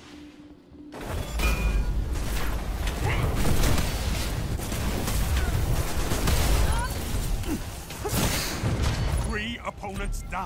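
Gunfire and fiery blasts roar in rapid bursts.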